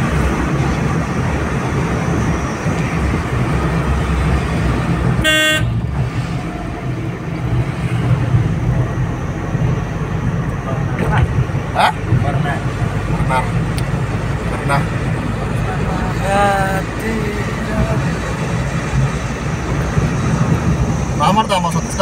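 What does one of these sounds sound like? A car engine hums steadily with road noise from inside the car.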